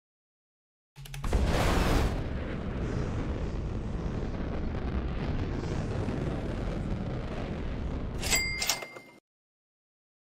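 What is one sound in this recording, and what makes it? Wind rushes loudly past, then cuts off.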